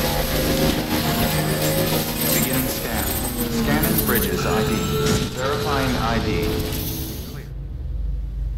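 An electric motorbike whirs as it rides over rough ground.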